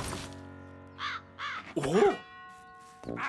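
A man cries out in alarm.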